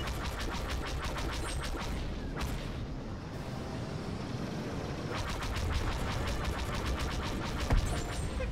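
Laser cannons fire in rapid bursts.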